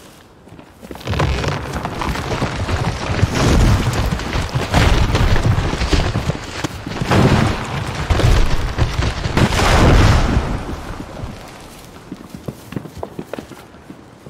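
Small footsteps patter quickly through grass and leaves.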